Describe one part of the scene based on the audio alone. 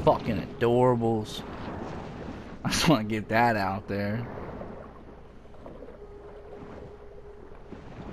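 Water swirls with a low, muffled underwater hum.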